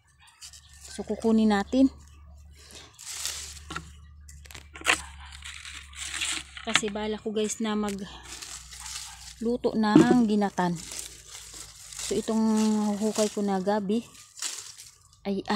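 Dry leaves and twigs rustle and crackle.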